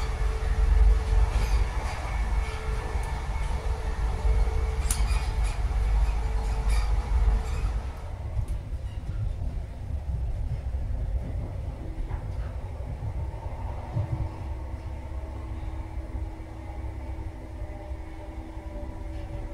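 A train rumbles steadily along its tracks, heard from inside a carriage, growing quieter partway through.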